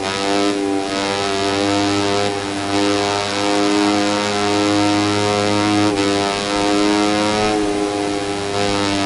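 A motorcycle engine whines loudly, its pitch rising and falling as it shifts gears.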